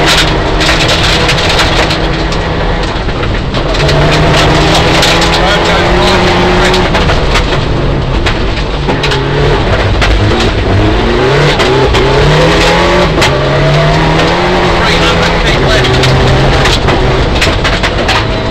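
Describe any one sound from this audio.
A car engine roars loudly, revving up and down through the gears.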